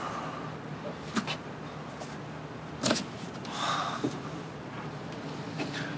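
Cardboard boxes scrape and thud as they are moved.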